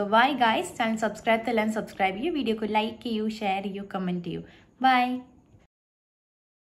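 A young woman speaks cheerfully and animatedly close to a microphone.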